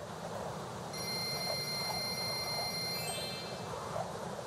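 A soft chime rings over and over in quick succession.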